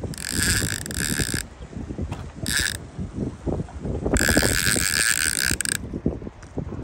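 A fishing reel's drag buzzes in short bursts.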